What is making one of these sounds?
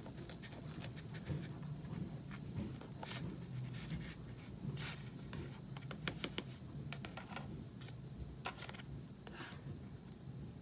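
Small objects click and rustle under a man's hands.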